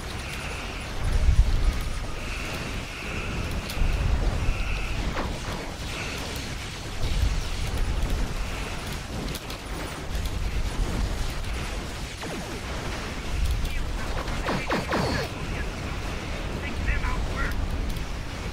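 Game explosions boom and rumble over and over.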